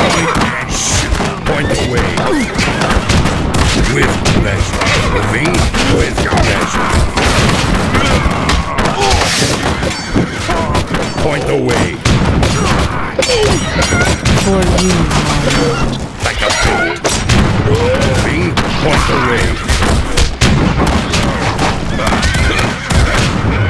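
Horses gallop and whinny amid the fighting.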